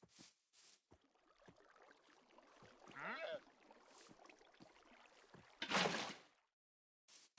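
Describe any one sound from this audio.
Water trickles and flows.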